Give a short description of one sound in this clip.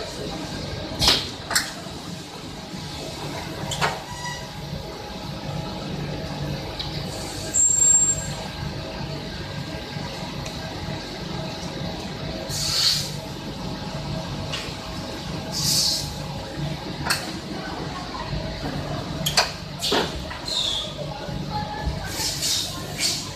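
Pneumatic machine parts click and hiss now and then.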